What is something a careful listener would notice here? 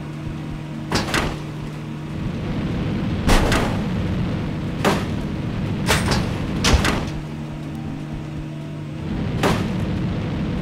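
Vehicles crash with loud thuds.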